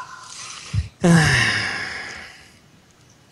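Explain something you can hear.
A video game plays a swooshing effect as a card is thrown away.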